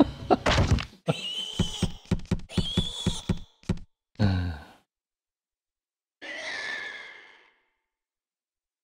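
A creature screeches and shrieks.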